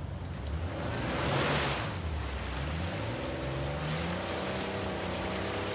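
Water splashes as a jeep drives through it.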